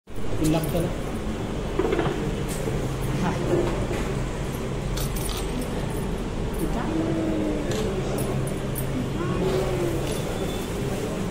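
Voices chatter in a busy room.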